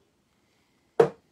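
A glass knocks down onto a hard surface.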